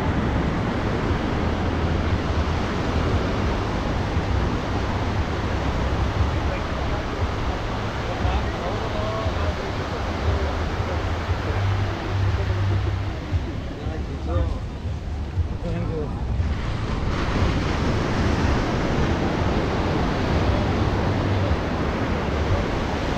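Waves wash steadily onto a beach outdoors.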